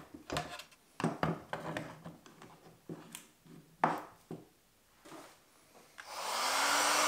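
A bench vise screw is cranked with wooden clicks and knocks.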